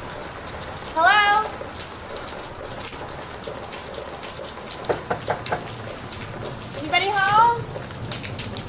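A young woman calls out loudly in a hesitant voice.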